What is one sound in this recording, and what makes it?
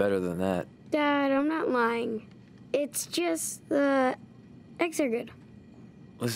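A young boy speaks, pleading and then calmly.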